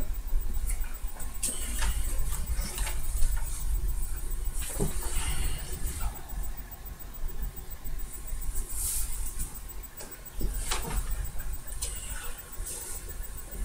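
An acoustic guitar knocks and thumps as it is handled roughly.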